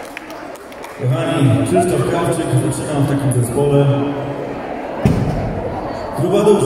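A man sings into a microphone over loudspeakers.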